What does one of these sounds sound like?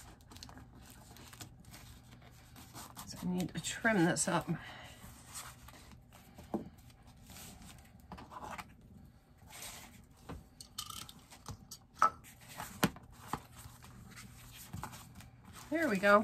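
Paper rustles and slides as hands handle it.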